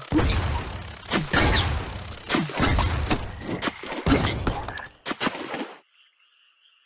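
Video game gunshots crackle in rapid bursts.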